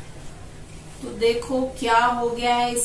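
A middle-aged woman speaks calmly close by.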